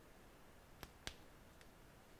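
A phone case clicks as it is pried off a phone.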